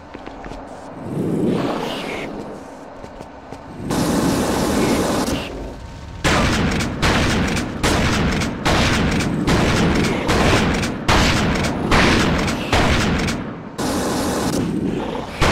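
A flamethrower roars in repeated bursts.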